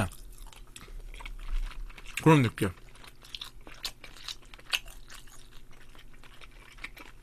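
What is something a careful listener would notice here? A young man chews and slurps food noisily, close to a microphone.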